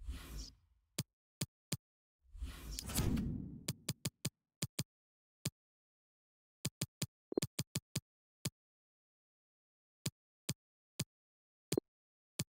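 Short electronic menu clicks tick one after another at an uneven pace.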